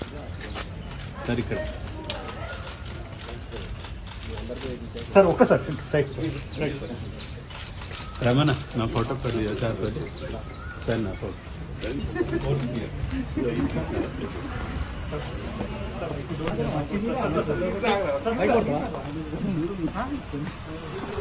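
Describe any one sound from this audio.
Several men and women talk over one another nearby.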